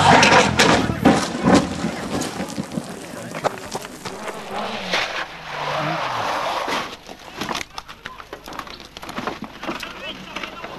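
A car crashes and scrapes along the ground as it rolls over.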